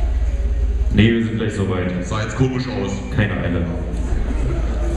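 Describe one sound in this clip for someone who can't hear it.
A band plays loud rock music.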